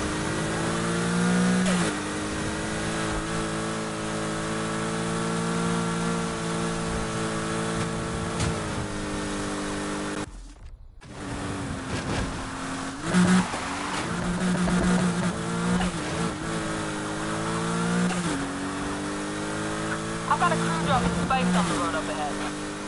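A car engine roars loudly, rising and falling in pitch as it revs and shifts gears.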